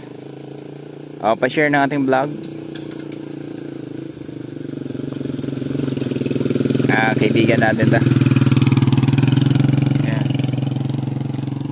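A motorcycle engine putters closer and passes nearby, growing louder.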